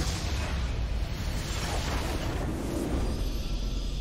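Magic blasts crackle and boom in a game battle.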